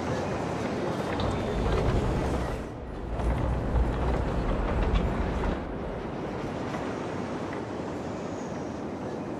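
Heavy road traffic hums and rumbles steadily.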